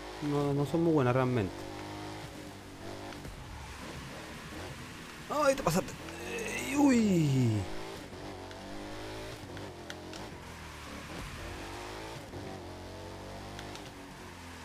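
A race car engine roars and revs steadily.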